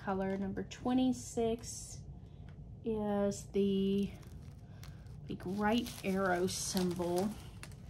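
A plastic bag of beads rustles and crinkles in a hand.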